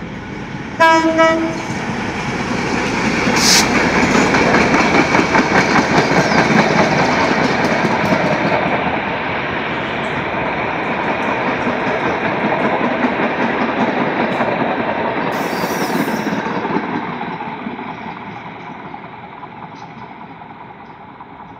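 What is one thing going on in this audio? A passenger train rumbles past close by, its wheels clacking rhythmically over the rail joints, then fades as it moves away.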